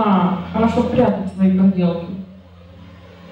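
A woman sings into a microphone, heard through loudspeakers.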